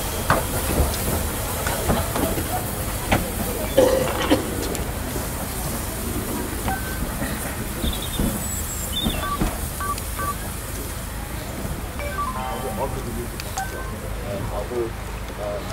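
A steam locomotive chuffs slowly as it pulls away along the track.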